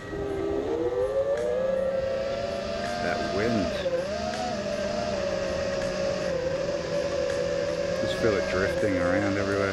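A racing quadcopter's motors whine, rising and falling in pitch with the throttle.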